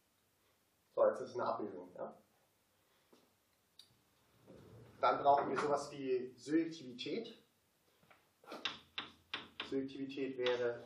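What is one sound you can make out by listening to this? A young man lectures calmly.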